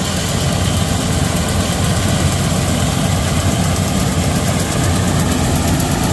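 A combine harvester's header rattles as it cuts through standing wheat.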